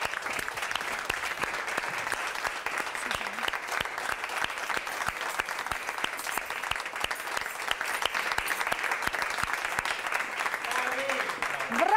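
A studio audience claps steadily.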